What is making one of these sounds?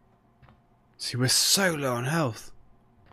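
A man speaks loudly and with animation, close to a microphone.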